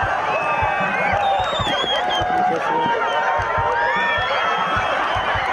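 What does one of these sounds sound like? A large outdoor crowd of men, women and children shouts, cheers and laughs excitedly.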